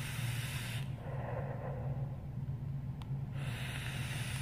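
A young man exhales a long breath.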